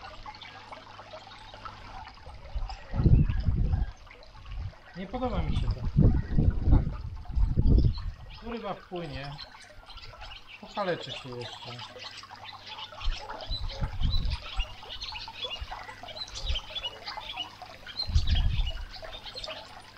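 Water splashes softly as a hand stirs a pond.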